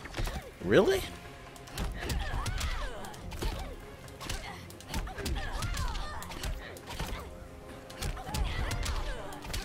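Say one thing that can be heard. Punches and kicks land with heavy thuds in a fast fight.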